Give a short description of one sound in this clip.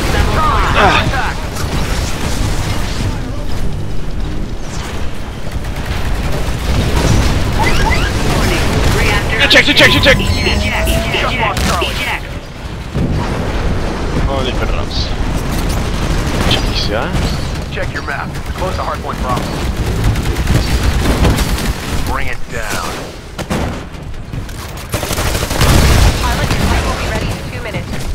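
Heavy gunfire and explosions boom and rattle throughout.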